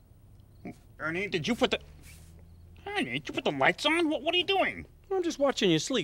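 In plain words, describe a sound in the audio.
A man speaks with animation in a cartoonish voice.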